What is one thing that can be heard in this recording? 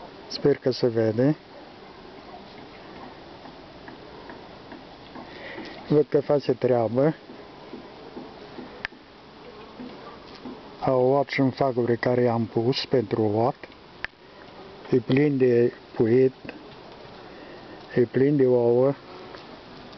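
Bees hum and buzz steadily close by.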